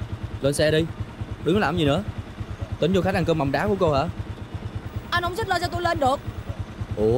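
A young woman speaks urgently nearby.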